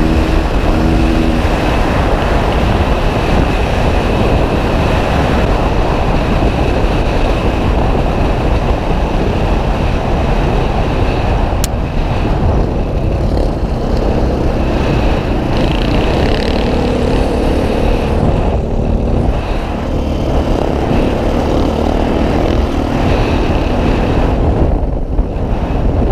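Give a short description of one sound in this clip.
A dirt bike engine roars up close.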